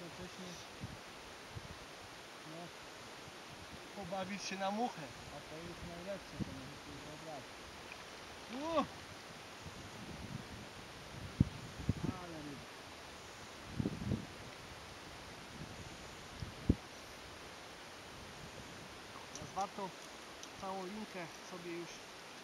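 Water laps gently around a wading man's legs.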